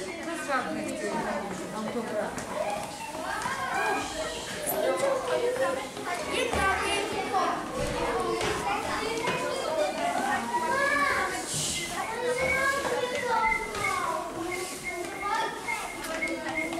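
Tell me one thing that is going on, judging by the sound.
Young children chatter and call out all at once, echoing in a stairwell.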